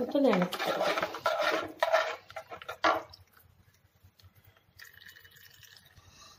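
A spoon scrapes and stirs inside a metal pot.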